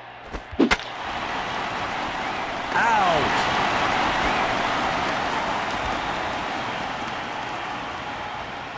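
A crowd murmurs and cheers steadily.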